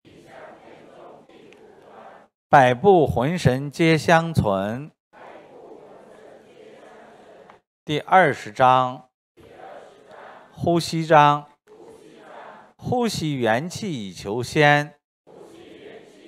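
A middle-aged man reads out loud into a microphone, in short loud bursts with quieter speech in between.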